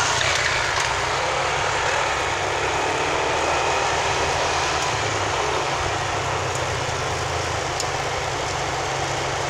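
Tyres roll steadily on the road surface.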